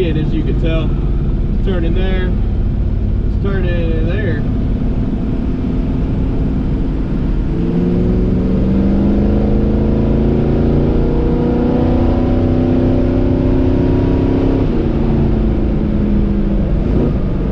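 A car engine rumbles steadily, then revs higher as the car speeds up.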